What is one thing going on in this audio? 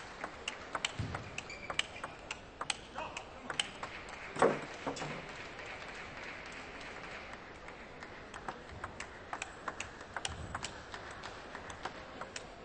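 A table tennis ball clicks sharply as it bounces and is struck.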